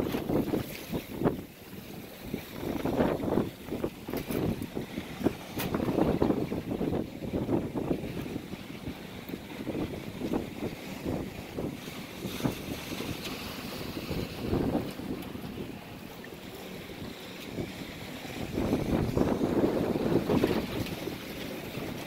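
Wind blows hard and buffets outdoors.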